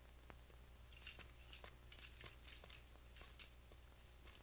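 A bicycle's wheels tick as it is pushed along.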